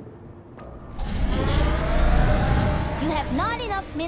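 A deep electronic whoosh swells and hums as units warp in.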